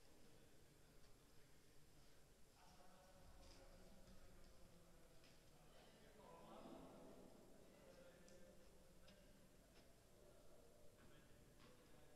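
A tennis ball bounces on a hard court floor in a large echoing hall.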